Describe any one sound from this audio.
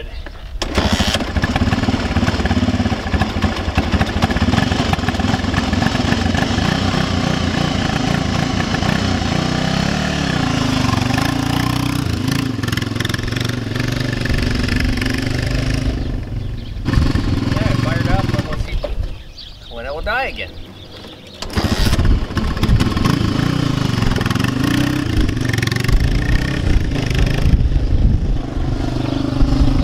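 A quad bike engine runs close by, revving up and down.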